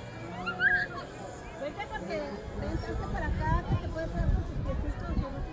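Young children chatter and squeal nearby, outdoors.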